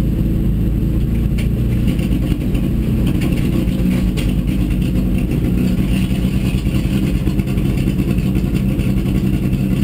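Gravel and stones rattle against the car's underside.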